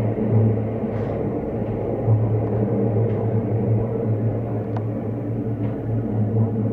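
Train wheels click over rail joints now and then.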